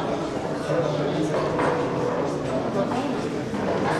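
A man chants a prayer.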